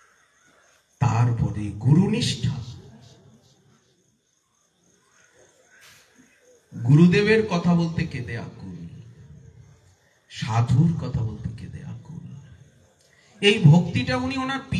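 A middle-aged man speaks with animation into a microphone, in bursts with pauses, heard through a loudspeaker.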